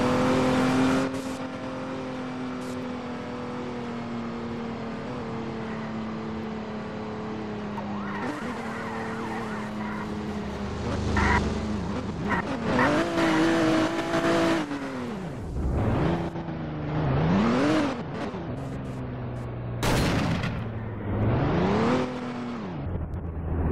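A car engine hums steadily, then revs up and down again and again.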